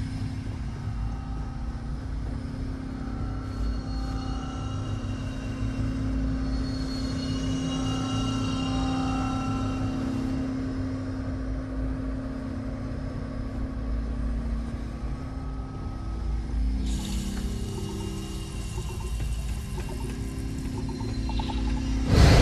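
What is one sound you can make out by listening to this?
Machinery hums with a deep, steady drone.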